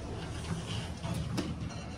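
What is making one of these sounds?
A finger presses an elevator button with a click.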